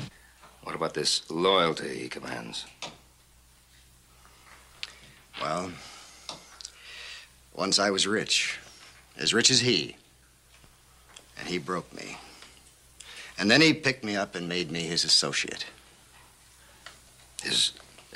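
A second middle-aged man answers calmly nearby.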